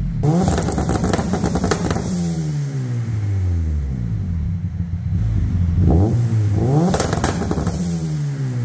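A car engine revs hard and falls back again and again.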